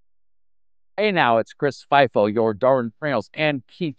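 A middle-aged man speaks calmly and cheerfully, close to a microphone.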